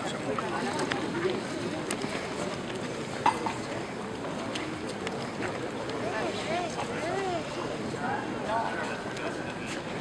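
Footsteps shuffle on pavement as a group walks slowly.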